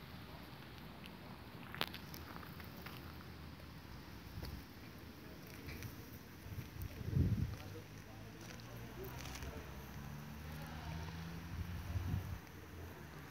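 A bumblebee buzzes low and steady close by.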